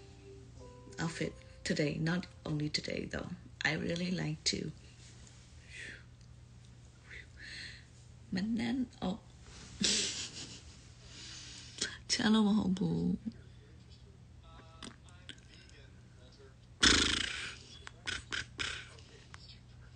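A young woman speaks softly, close to the microphone.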